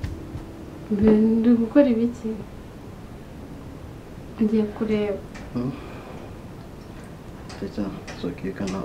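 A young woman speaks in a distressed, tearful voice close by.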